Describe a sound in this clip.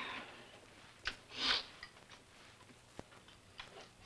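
Cutlery clinks against plates.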